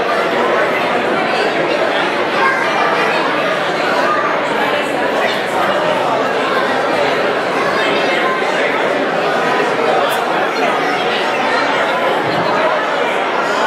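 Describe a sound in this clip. A crowd of men, women and children chatters all at once in a large echoing hall.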